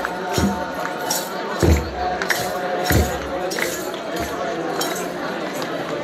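Hand-held sistrums jingle and rattle in rhythm.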